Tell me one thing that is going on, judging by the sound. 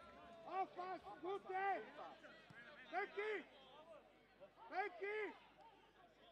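Men shout to each other on an outdoor pitch.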